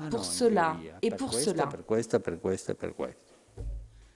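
An elderly man speaks with feeling into a microphone in a slightly echoing room.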